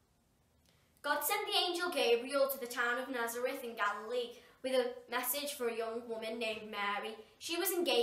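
A young girl reads aloud clearly, close by.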